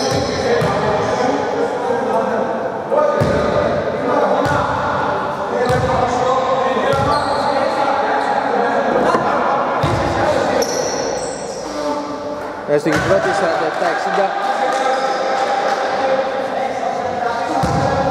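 Young men call out to each other across the hall.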